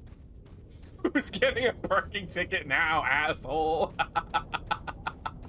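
A man laughs loudly into a close microphone.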